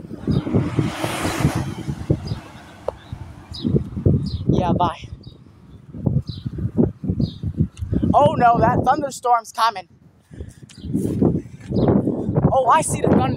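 A young person talks with animation close to the microphone.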